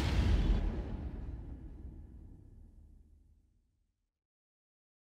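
A helicopter's engine and rotor drone and fade away.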